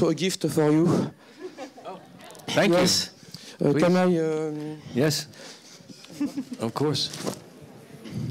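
An older man speaks with animation into a microphone in an echoing hall.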